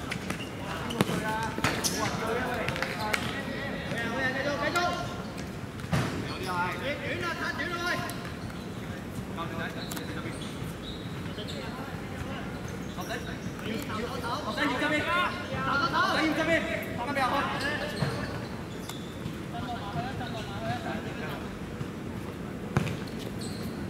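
A ball is kicked with a thud.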